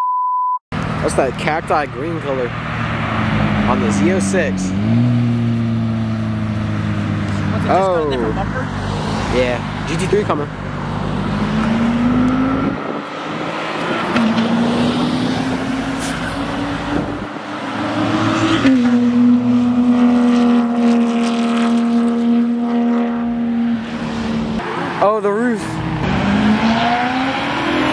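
A sports car engine roars loudly as it accelerates past.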